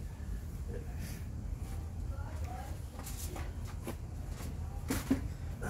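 Objects knock and clatter on a table.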